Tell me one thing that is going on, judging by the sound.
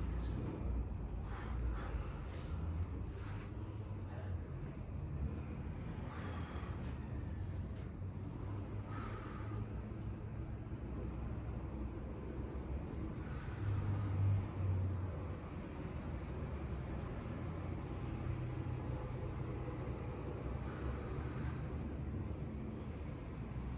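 A man breathes deeply and steadily.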